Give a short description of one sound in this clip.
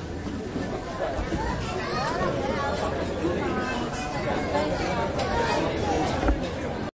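A crowd of men chatters loudly all around.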